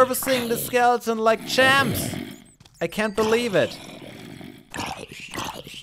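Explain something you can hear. A monster groans low and gurgling.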